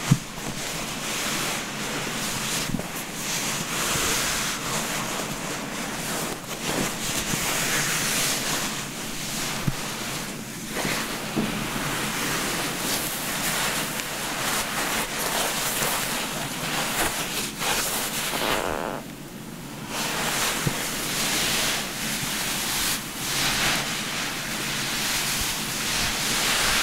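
A towel rubs and rustles close by against wet hair.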